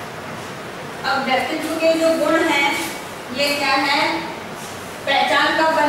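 A woman speaks calmly, as if explaining a lesson.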